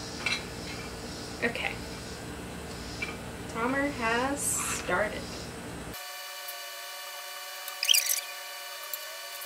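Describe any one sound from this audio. Felt-tip markers squeak on paper.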